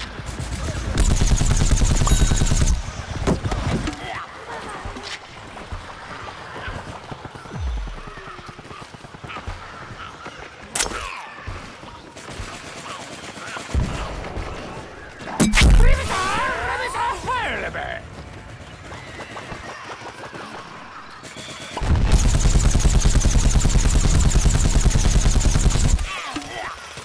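A game blaster fires rapid bursts of shots.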